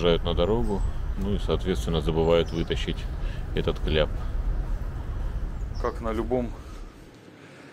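A man speaks calmly, close up.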